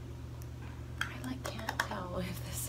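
A young woman speaks casually close by.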